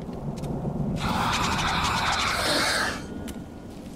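An alien creature lets out a harsh, hissing screech.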